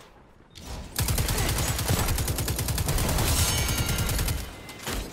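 A rapid-fire gun rattles in a fast steady burst.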